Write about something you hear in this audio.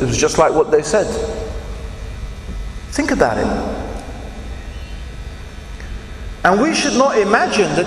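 A man speaks with animation into a microphone, with pauses, in an echoing hall.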